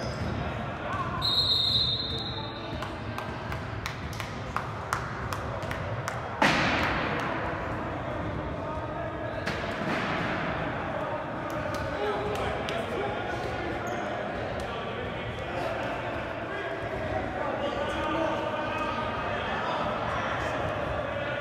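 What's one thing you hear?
A basketball bounces on a hard wooden floor.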